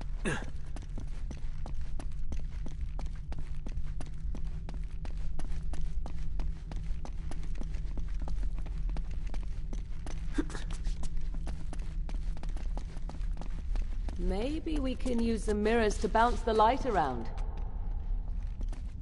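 Footsteps run quickly over hard stone.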